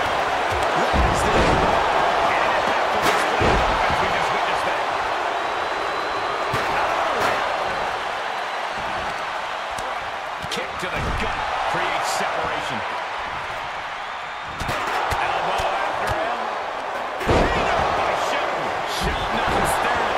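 Heavy thuds of bodies slamming onto a wrestling mat ring out now and then.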